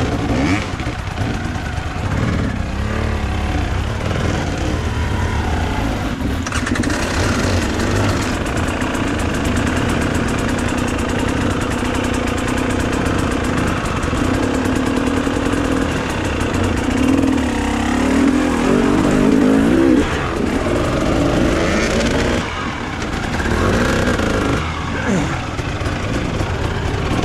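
Other dirt bike engines rev and strain nearby on a rocky climb.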